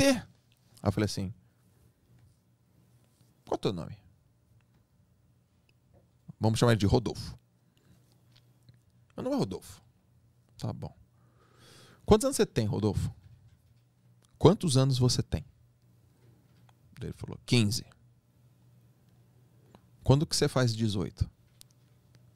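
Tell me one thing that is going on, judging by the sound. A man speaks into a close microphone in short bursts with long pauses.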